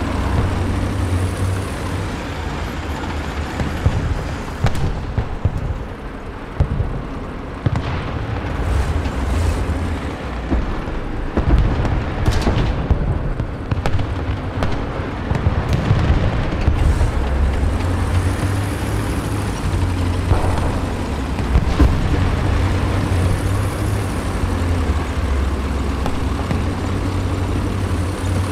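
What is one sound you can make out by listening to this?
A tank engine rumbles and clanks steadily as the tank drives over grass.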